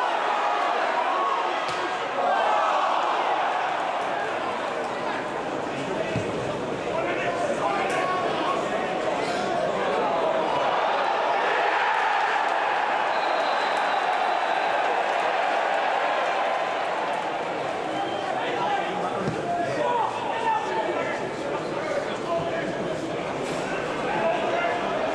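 A crowd sings and chants in an open stadium.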